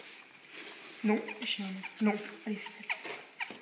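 A young lamb bleats close by.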